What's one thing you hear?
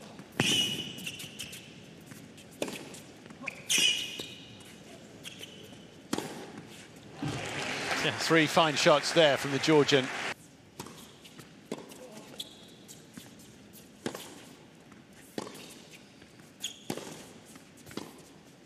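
A tennis ball is struck sharply with a racket, echoing in a large indoor hall.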